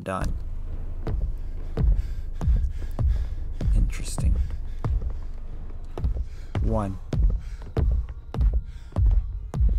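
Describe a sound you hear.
Footsteps thud slowly on wooden stairs.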